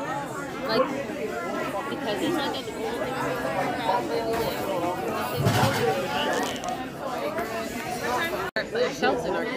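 A crowd of people chatters in a lively, echoing room.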